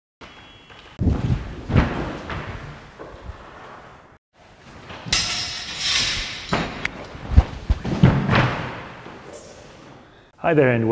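Bodies thump heavily onto a wooden floor.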